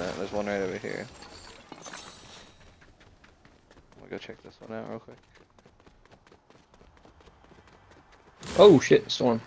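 Quick footsteps patter on dirt and pavement.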